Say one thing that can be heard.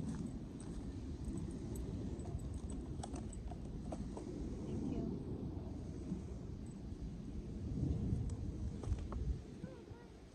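Wind rumbles loudly across the microphone outdoors.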